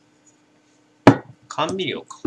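A glass bottle is set down on a hard desk with a knock.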